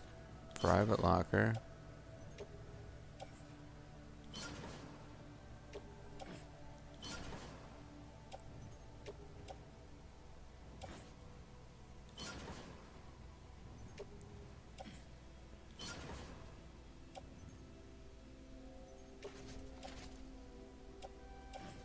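Soft electronic whooshes and short beeps sound as menu items are picked.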